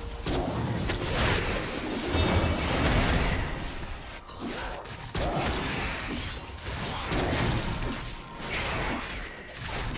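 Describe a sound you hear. Game combat effects clash and crackle in a busy fight.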